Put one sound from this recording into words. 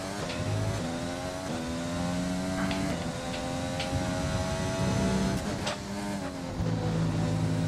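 A racing car engine screams at high revs, its pitch climbing and dropping sharply with each gear change.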